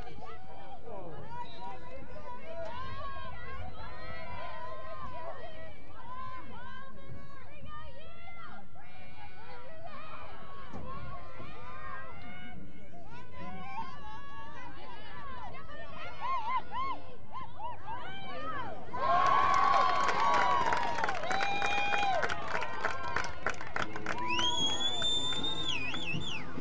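Young women shout and call to each other across an open field.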